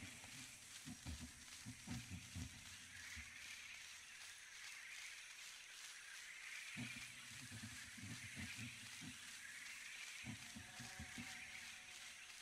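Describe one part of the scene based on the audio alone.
Small soft footsteps patter over grass and dirt.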